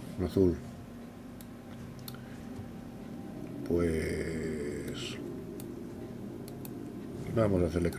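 An older man speaks briefly into a close microphone.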